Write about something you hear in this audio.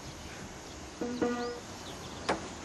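A few piano notes ring out.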